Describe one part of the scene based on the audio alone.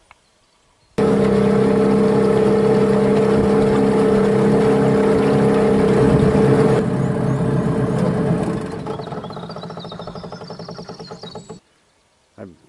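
A boat's outboard motor drones steadily.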